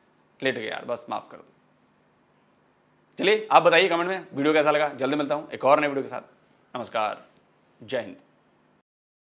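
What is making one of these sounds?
A man speaks calmly through a loudspeaker, in short bursts.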